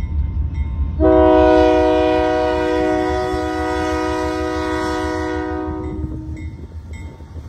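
A train horn blows loudly in a long blast.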